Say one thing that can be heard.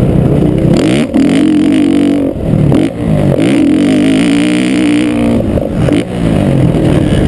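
A motorcycle engine revs hard up and down, close by.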